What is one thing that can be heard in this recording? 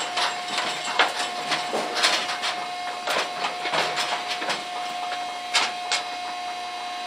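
Cattle knock and bump against a metal chute.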